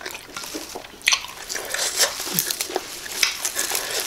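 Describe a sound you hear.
Crisp leaves crunch and rustle between a woman's fingers.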